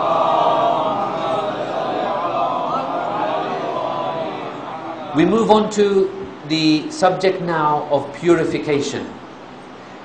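A man recites and speaks with feeling into a microphone.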